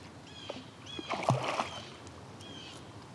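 A fish splashes at the water's surface nearby.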